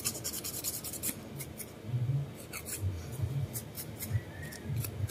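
A thin metal tool scrapes under a toenail in short strokes.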